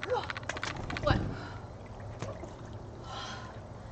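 Water splashes as a woman steps into a tub.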